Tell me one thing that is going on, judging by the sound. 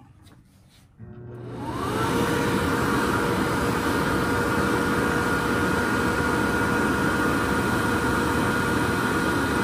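A hand dryer blows with a loud, steady whir.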